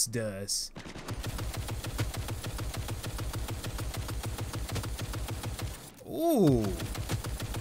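A rifle fires in rapid, steady bursts.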